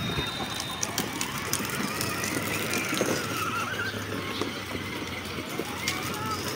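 Plastic wheels rumble and clatter over paving stones.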